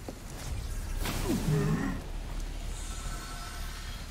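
A crackling energy blast bursts.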